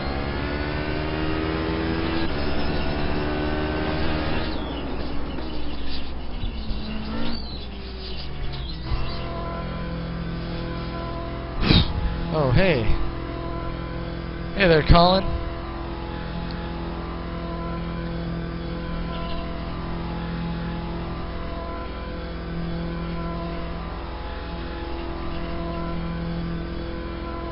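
A racing car engine roars and shifts through the gears.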